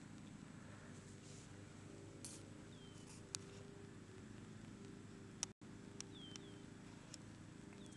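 Puppies scamper and tumble through long grass.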